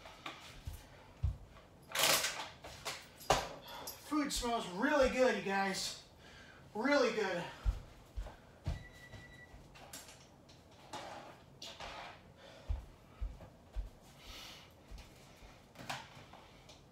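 Footsteps thump on a wooden floor.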